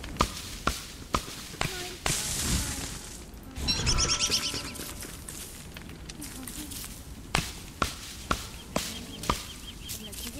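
Footsteps tread on soft ground at an even pace.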